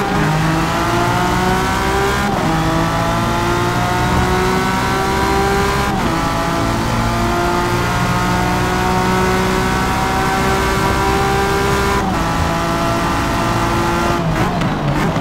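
A racing car engine roars, rising in pitch through each gear and dropping at each shift.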